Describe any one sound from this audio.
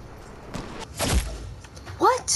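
A gunshot cracks loudly.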